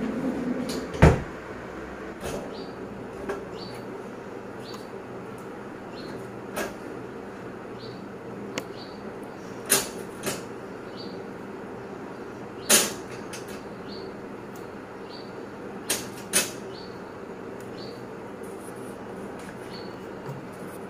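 Items clink against a metal wire rack as they are placed in it.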